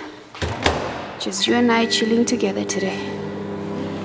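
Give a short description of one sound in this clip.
A microwave beeps as its buttons are pressed.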